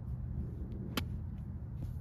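A golf club strikes a ball with a sharp click.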